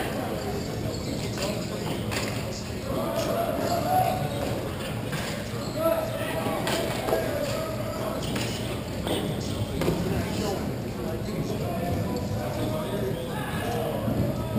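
Inline skate wheels roll and scrape on a hard floor, echoing in a large hall.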